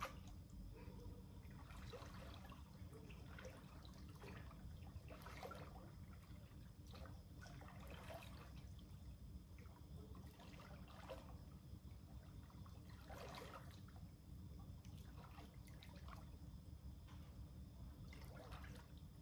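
Pool water laps and splashes close by.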